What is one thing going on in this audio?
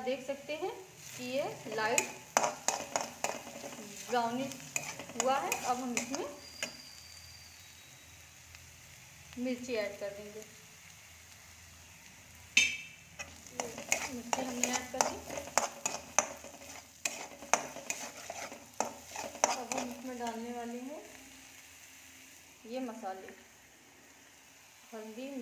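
Onions sizzle softly in hot oil.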